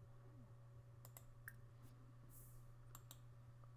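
A computer game menu gives short soft clicks.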